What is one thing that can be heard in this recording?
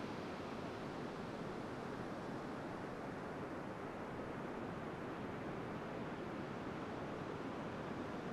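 Waves wash steadily onto a shore.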